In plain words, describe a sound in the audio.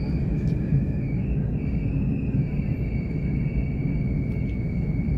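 A train's motor whines with a steady high tone.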